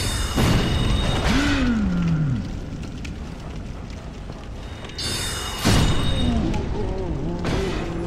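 A magic spell bursts with a bright, ringing crackle.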